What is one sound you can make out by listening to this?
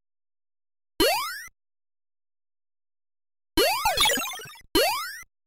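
A quick rising electronic bleep sounds several times as a game character jumps.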